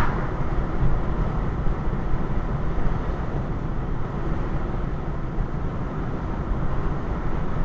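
A car drives steadily along a highway, with a low rumble of tyres on the road.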